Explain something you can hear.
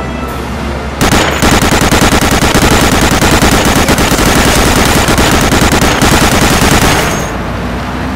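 A machine gun fires in rapid, continuous bursts.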